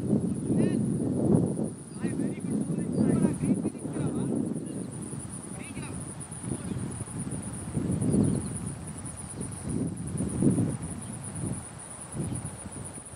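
Wind buffets the microphone outdoors in gusts.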